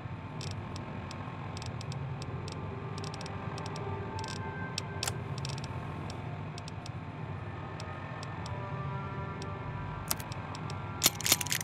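Short electronic clicks tick again and again as a menu is scrolled.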